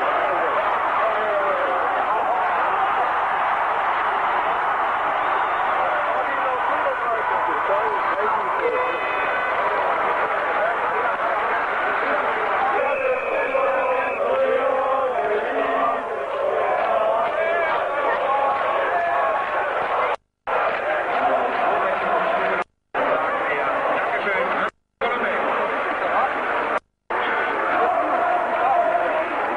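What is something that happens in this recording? A large stadium crowd chants and cheers loudly outdoors.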